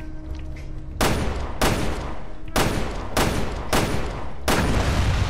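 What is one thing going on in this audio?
Gunshots ring out in quick succession.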